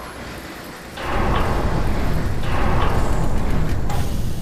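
A heavy metal door rumbles and grinds as it slides open.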